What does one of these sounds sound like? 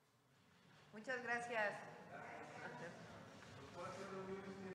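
A woman speaks through a microphone and loudspeakers in a large echoing hall.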